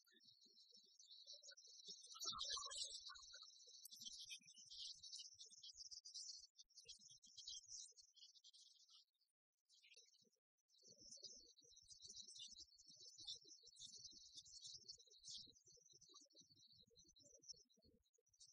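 Rackets strike a shuttlecock back and forth.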